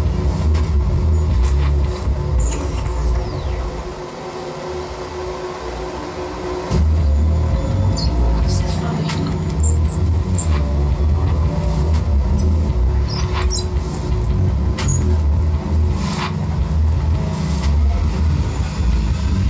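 Loud electronic music with a deep pulsing bass plays.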